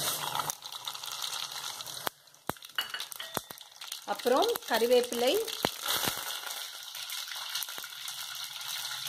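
Hot oil sizzles and crackles steadily in a pot.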